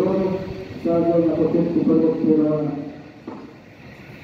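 A train horn sounds loudly.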